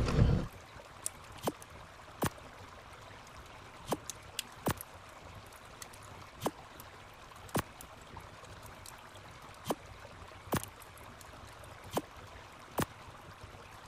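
Short soft clicks sound one after another.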